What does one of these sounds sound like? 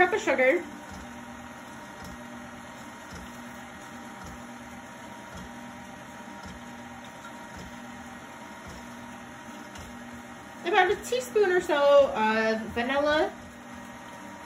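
An electric stand mixer hums steadily as it churns.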